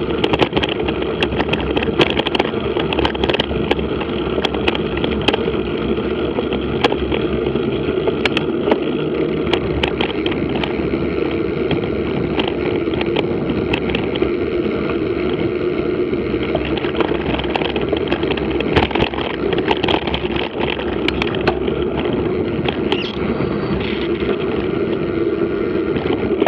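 Bicycle tyres crunch over a gravel track.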